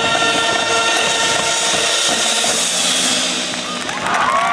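A marching band plays brass and drums loudly outdoors.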